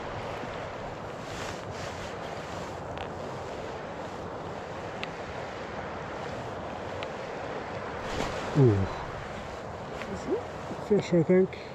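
A river flows steadily, with water rushing softly.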